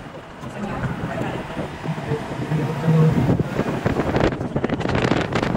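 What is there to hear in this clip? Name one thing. A car drives steadily along a road.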